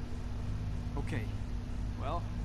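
A middle-aged man answers quietly with a single short word.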